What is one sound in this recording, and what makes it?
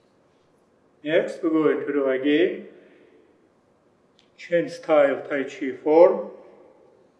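A middle-aged man speaks calmly through a face mask, in a room with a slight echo.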